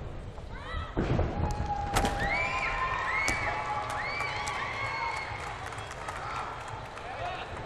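A high bar thuds and rattles as a gymnast grabs and swings on it.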